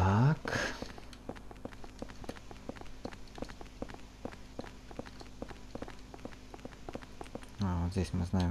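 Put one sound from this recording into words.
Footsteps tap steadily on a hard floor.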